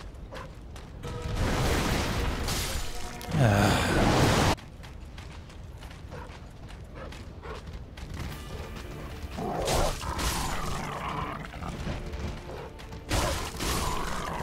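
Steel blades swing and strike in a fight.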